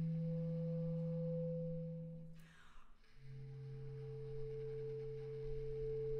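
A bass clarinet plays long, low, steady notes.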